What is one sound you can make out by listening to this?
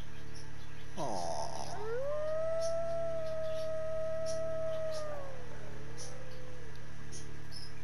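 A wolf howls in the distance.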